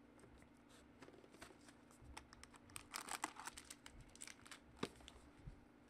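Plastic wrap crinkles and rustles as hands tear open a card pack.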